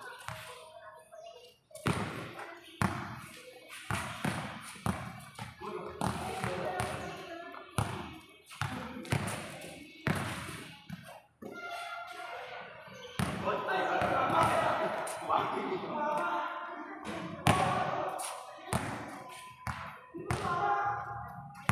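A basketball bounces on a hard court, echoing under a high roof.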